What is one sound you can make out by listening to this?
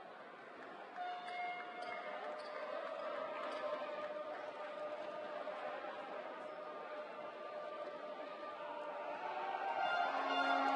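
A group of young men cheer and shout together in a large echoing hall.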